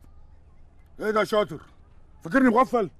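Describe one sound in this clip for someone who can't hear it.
An older man speaks in a low voice, close by.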